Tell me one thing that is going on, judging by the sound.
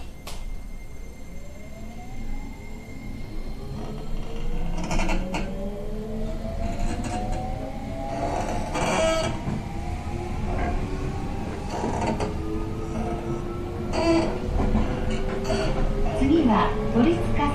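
A train's electric motors whine, rising steadily in pitch.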